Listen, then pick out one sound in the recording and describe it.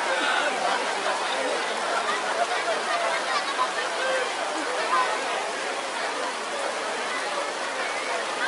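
A large crowd of men chants and shouts together loudly.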